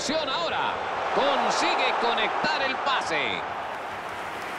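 A stadium crowd cheers loudly after a goal.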